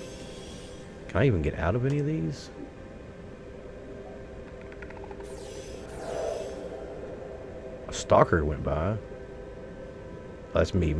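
A small submarine's motor hums steadily underwater.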